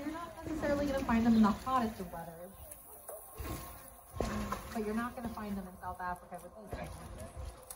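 A woman talks nearby with animation.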